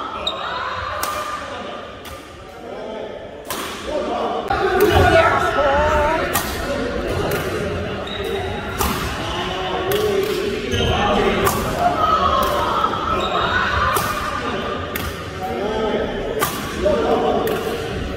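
A racket strikes a shuttlecock with sharp pops in an echoing hall.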